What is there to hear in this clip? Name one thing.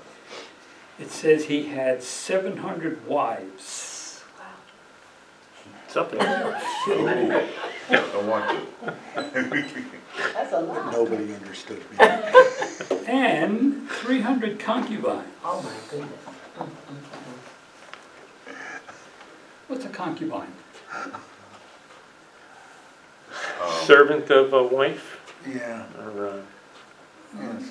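An elderly man speaks calmly, with pauses.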